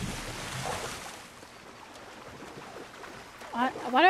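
A person swims, splashing through water.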